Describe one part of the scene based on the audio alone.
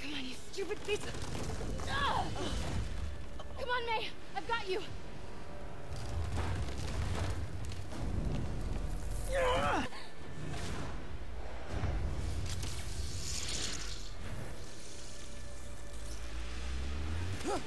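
A fire roars with a deep rumble.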